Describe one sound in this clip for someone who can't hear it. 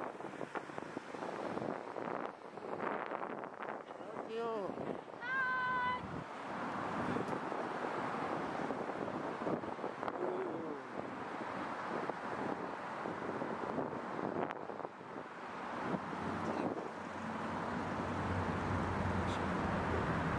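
Traffic hums steadily along a nearby city street.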